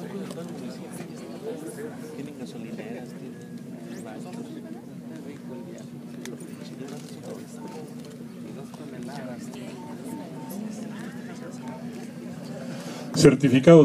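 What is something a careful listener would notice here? A crowd of people murmurs and chatters quietly nearby.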